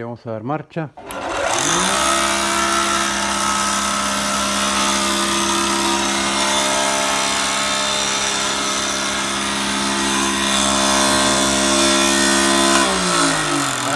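A woodworking machine's motor starts up and runs with a loud, steady hum.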